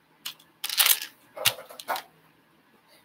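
Plastic toy bricks click and rattle.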